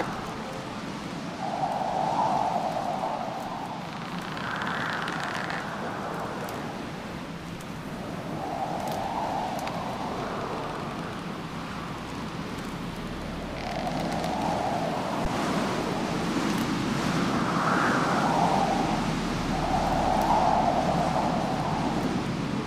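Wind howls in gusts, rising and falling.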